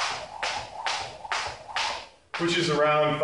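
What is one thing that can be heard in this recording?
A jump rope slaps the floor in a quick, steady rhythm.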